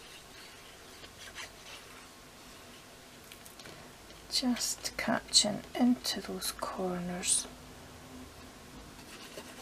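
Paper rustles softly between hands.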